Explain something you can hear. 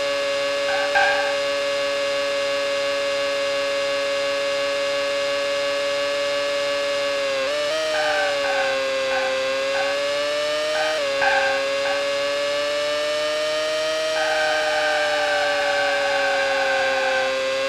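Tyres screech through a corner.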